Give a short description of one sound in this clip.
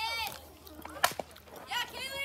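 A softball bat hits a ball with a sharp crack.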